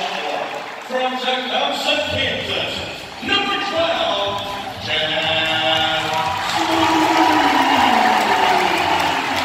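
A large crowd murmurs and cheers in the stands.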